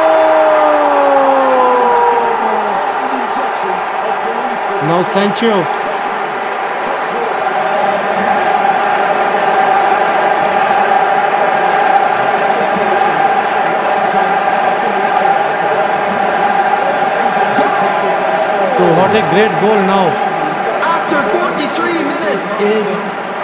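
A large stadium crowd cheers and chants loudly.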